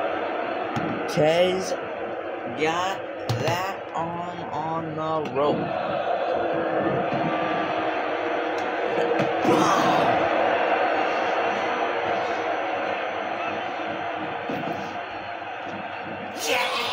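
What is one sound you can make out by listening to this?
A crowd cheers and murmurs steadily throughout a large arena.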